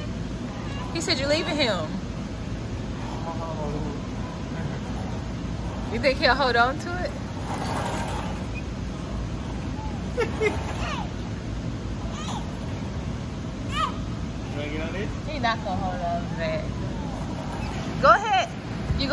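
A young child squeals and shrieks excitedly nearby.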